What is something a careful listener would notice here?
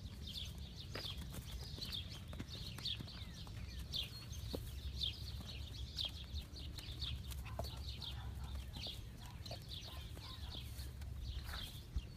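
Hooves thud softly on dry dirt as a mare and foal walk.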